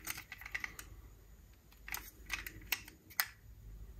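A toy car's door clicks open.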